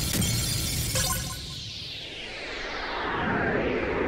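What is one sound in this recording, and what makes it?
A loud whooshing burst sweeps down in pitch and fades.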